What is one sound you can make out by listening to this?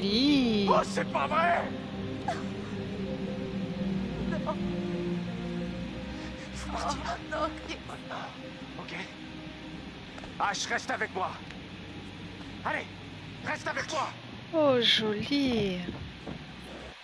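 A young man shouts in distress, then speaks urgently.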